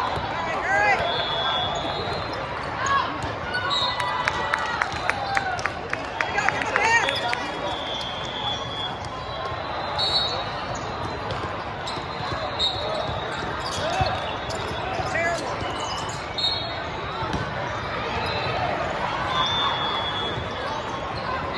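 Shoes squeak sharply on a court floor in a large echoing hall.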